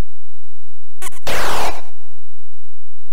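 An electronic zap sweeps downward in pitch.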